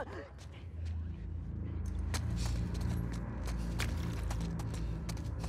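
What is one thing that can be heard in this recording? Footsteps crunch slowly over a gritty floor.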